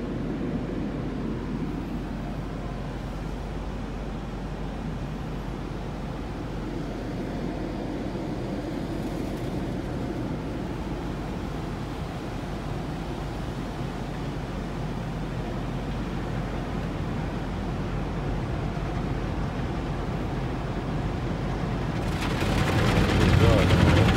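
Water sprays and drums steadily on a car's windshield, heard from inside the car.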